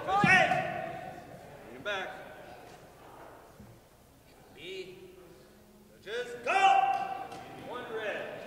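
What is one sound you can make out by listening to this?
Young women shout sharp fighting cries in a large echoing hall.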